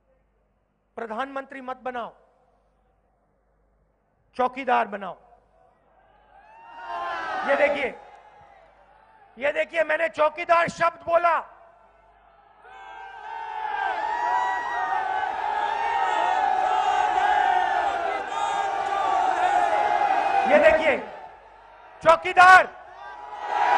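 A man speaks forcefully into a microphone, heard through loudspeakers outdoors.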